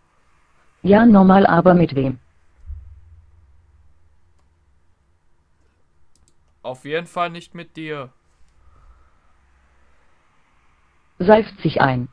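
A young woman's synthetic voice speaks calmly in short phrases through a computer speaker.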